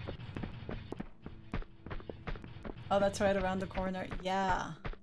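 Footsteps patter quickly and evenly on a hard floor.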